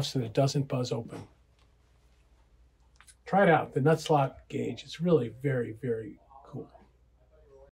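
An older man talks calmly and close up.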